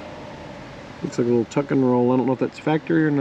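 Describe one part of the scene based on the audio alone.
A man speaks close by in a drawn-out, animated way.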